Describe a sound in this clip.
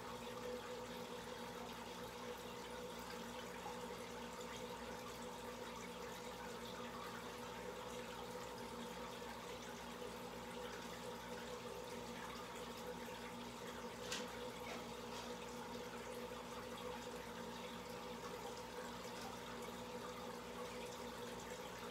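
Air bubbles from an air stone burble up through an aquarium's water.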